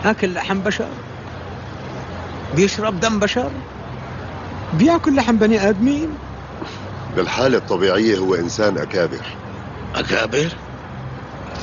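An older man speaks tensely and gravely, close by.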